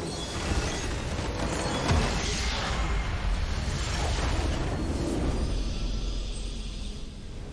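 A building explodes with a loud rumbling blast.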